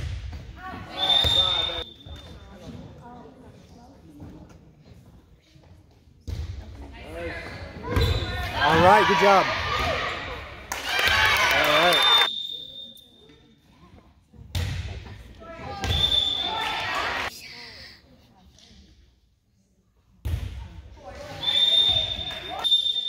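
A referee's whistle blows sharply several times in a large echoing hall.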